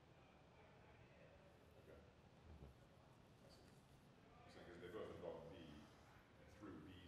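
A man speaks calmly in a quiet room.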